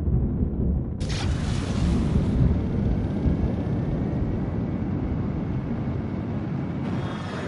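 A spaceship thruster roars into a sudden boost with a rushing whoosh.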